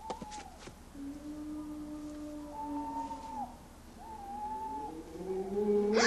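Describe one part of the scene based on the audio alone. A young boy sings a slow, high melody.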